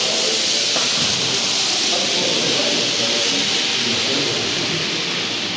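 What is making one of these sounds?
Several men talk quietly in the distance in a large echoing hall.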